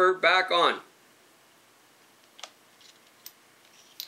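Small metal parts click together in a man's hands.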